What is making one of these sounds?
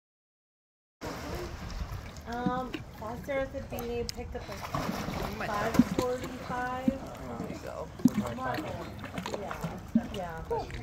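Water splashes and laps gently.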